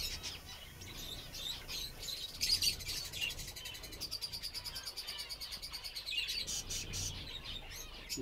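Small birds chirp and twitter rapidly close by.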